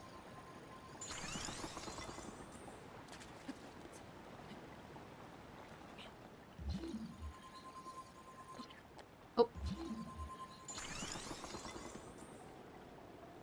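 A block of ice forms with a cracking, shimmering whoosh.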